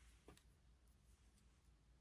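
Scissors snip through thread.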